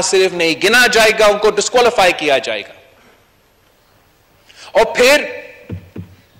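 A young man speaks forcefully into a microphone.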